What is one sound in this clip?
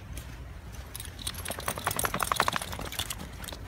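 A jacket rustles close by.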